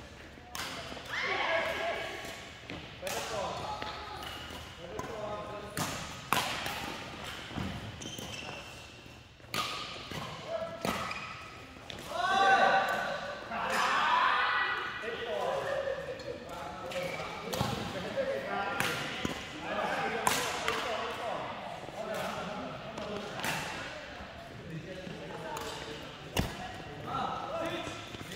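Shuttlecocks are struck sharply by rackets, again and again, echoing in a large hall.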